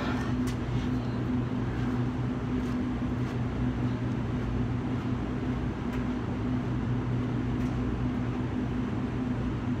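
Footsteps walk away on concrete.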